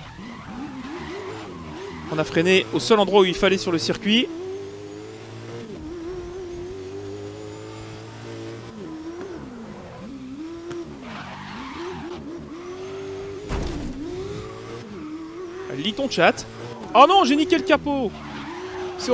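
A race car engine roars steadily, its pitch rising and falling with gear changes.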